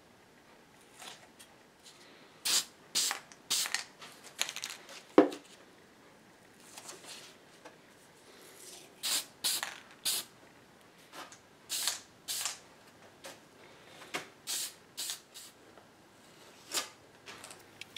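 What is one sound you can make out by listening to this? Masking tape is torn off in short strips.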